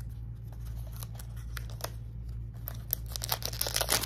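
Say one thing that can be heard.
Cardboard tears as a box is opened.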